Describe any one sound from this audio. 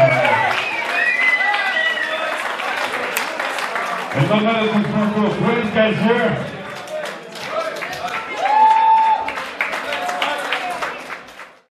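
A crowd cheers and shouts in a large room.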